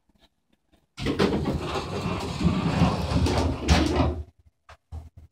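Elevator doors rumble as they slide shut.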